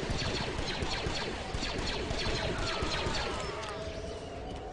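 Rapid blaster shots fire in quick bursts.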